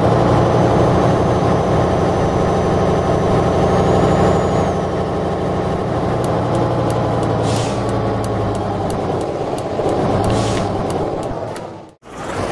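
A truck engine drones steadily, with a low rumble.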